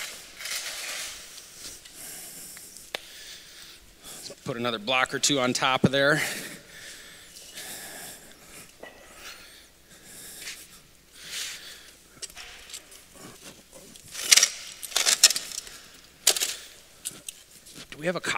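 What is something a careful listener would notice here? Stone blocks knock and scrape as they are set down.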